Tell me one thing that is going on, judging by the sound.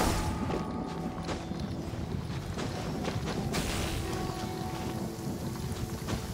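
Light footsteps scuff on rock as a figure climbs.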